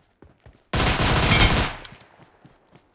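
A smoke grenade bursts with a loud hiss.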